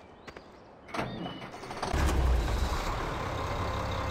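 A tractor engine rumbles steadily up close.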